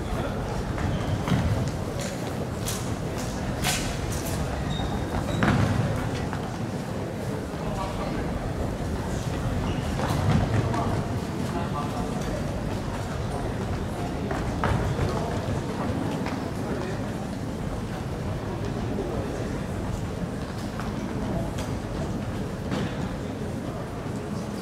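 Basketballs bounce with an echo in a large hall.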